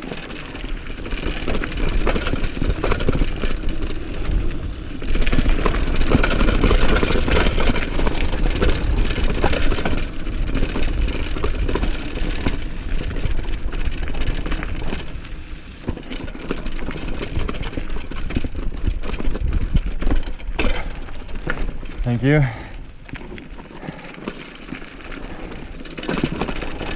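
A mountain bike rattles over bumps on the trail.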